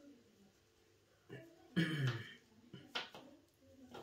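Cards are shuffled by hand.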